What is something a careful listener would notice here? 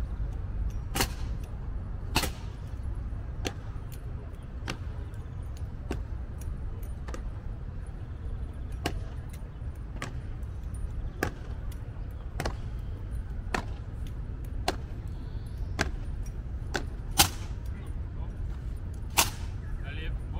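Boots stamp sharply on stone in a slow, even marching rhythm.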